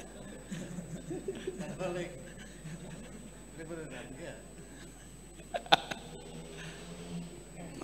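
An elderly man laughs into a microphone.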